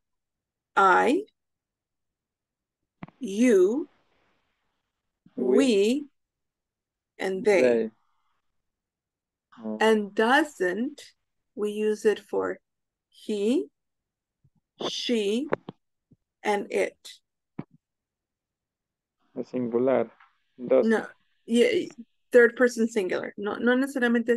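A young woman speaks clearly through an online call, pausing between phrases.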